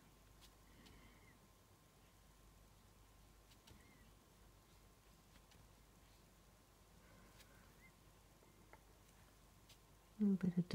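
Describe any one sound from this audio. A brush taps and strokes softly on paper.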